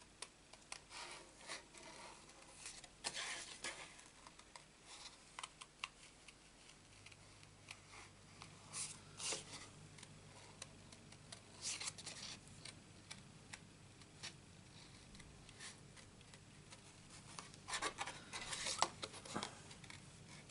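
Paper rustles as it is turned in the hands.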